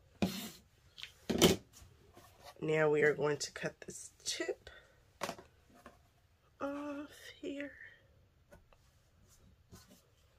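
Paper and fabric rustle as they are moved around.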